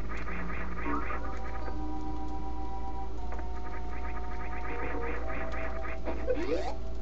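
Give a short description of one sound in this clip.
A spinning jump whirs in quick, even pulses.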